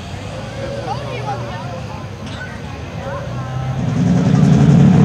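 A tractor engine idles and rumbles.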